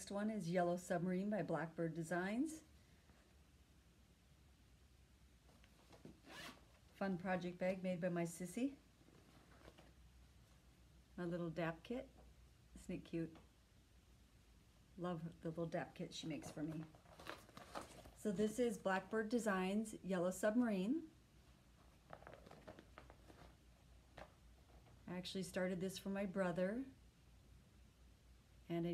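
A woman talks calmly and close by, in bursts with pauses.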